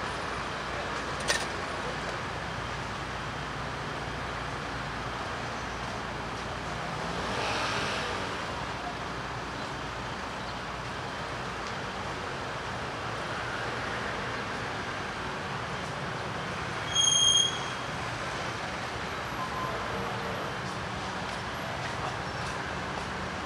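Steady city traffic hums nearby outdoors.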